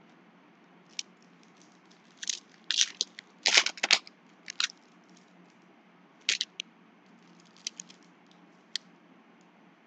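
A foil card wrapper crinkles and rustles up close.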